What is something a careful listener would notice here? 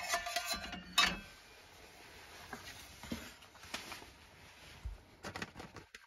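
A metal pot clunks as it is set down on a table.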